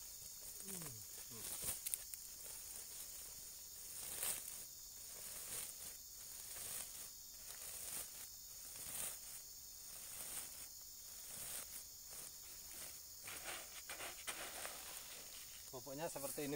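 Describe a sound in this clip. A plastic sack rustles and crinkles as it is handled.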